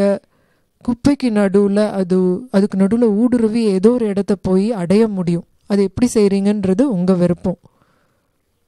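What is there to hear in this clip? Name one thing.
An elderly man chants in a deep, wavering voice through a microphone.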